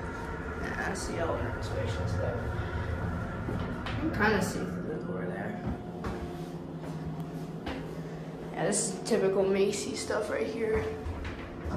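An elevator car rattles and knocks against its guide rails.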